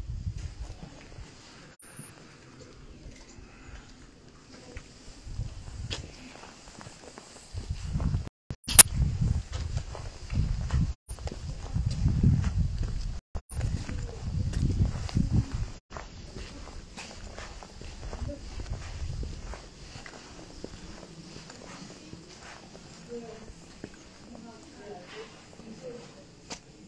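Footsteps tap on stone paving.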